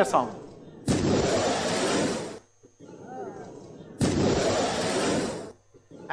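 A jet flies over with a sudden loud boom and roar.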